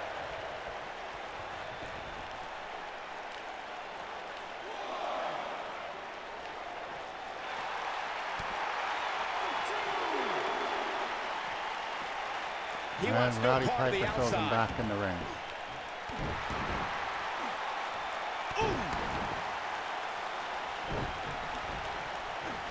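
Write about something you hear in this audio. A crowd cheers and roars steadily in a large arena.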